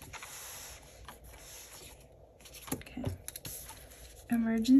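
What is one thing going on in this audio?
Paper rustles and slides close by.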